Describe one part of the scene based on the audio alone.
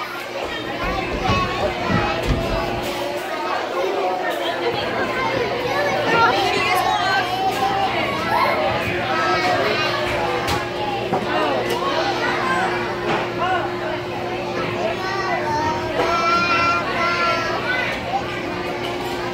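A little girl sings and babbles into a microphone, heard through a loudspeaker.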